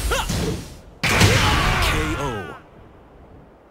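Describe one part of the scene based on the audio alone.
A loud explosive blast booms and rings out.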